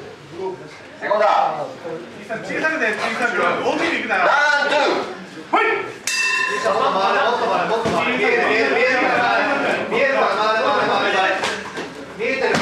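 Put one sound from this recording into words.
Men shout encouragement loudly.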